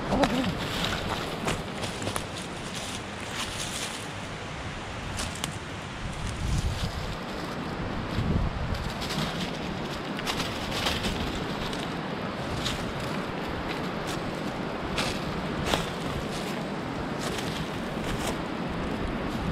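A dog's paws rustle through dry leaves.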